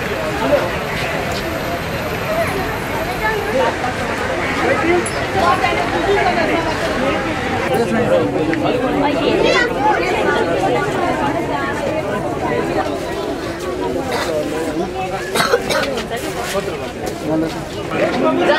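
A crowd chatters.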